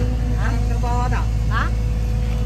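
A middle-aged woman speaks nearby.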